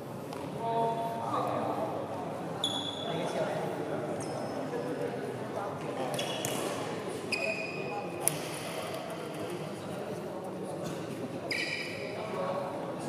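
Spectators chatter quietly in an echoing hall.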